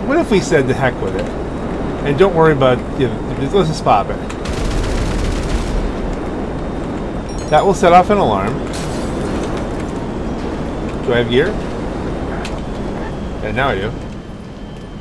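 Wind rushes steadily past a gliding wingsuit.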